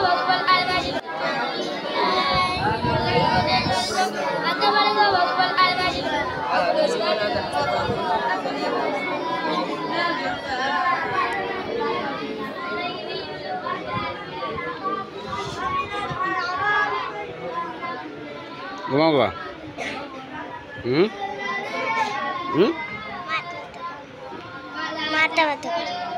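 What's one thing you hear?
Many children recite aloud together in a chanting drone.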